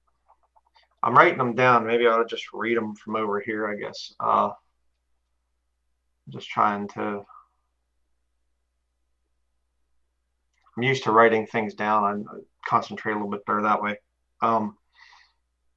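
A man speaks calmly through a microphone, close by, in short bursts with pauses.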